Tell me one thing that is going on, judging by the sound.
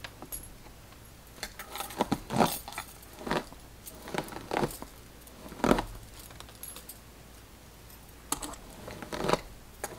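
A brush swishes through long hair.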